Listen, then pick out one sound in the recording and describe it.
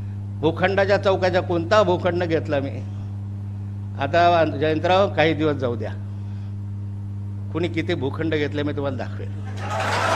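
A middle-aged man speaks firmly into a microphone, with pauses between phrases.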